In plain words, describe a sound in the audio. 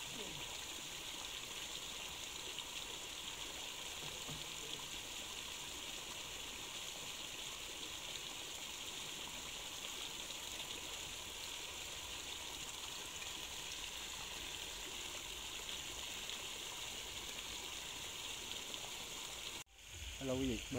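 Water gently splashes around people wading in a river.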